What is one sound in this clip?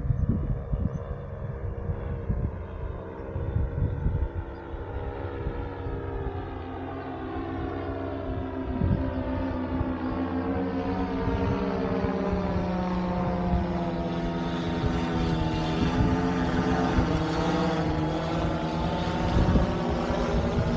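A paramotor engine drones overhead, growing louder as it comes closer.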